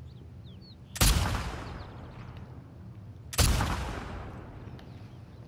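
A rifle fires two loud shots that echo outdoors.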